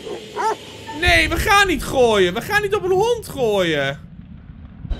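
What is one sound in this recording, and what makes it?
A dog snarls and growls aggressively.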